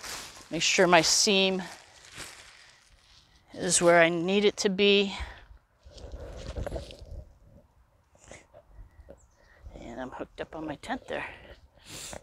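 A woman speaks with animation nearby, outdoors.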